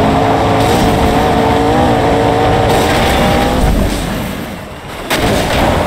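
Tyres crunch and skid over gravel and dirt.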